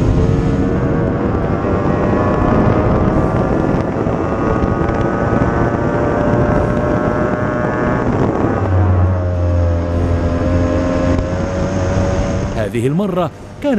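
A racing boat's engine roars loudly at high speed.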